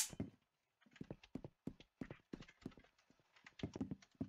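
Footsteps tap lightly on a hard floor.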